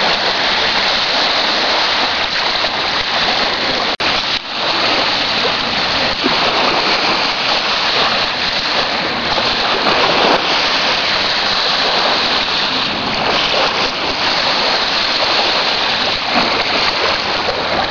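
Wind blows hard across the open water.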